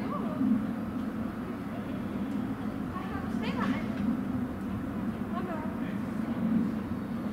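An electric suspended railway car hums and rumbles along a steel overhead rail.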